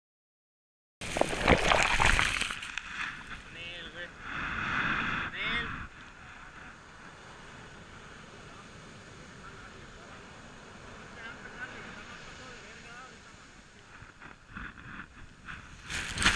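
Waves crash and roll onto a shore.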